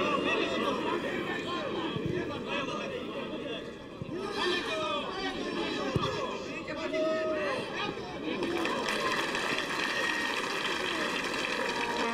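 A stadium crowd chants and roars outdoors.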